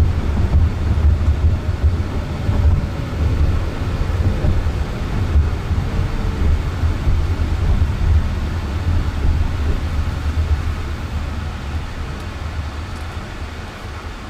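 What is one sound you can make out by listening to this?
A car drives along a road, its tyres rumbling steadily from inside the cabin.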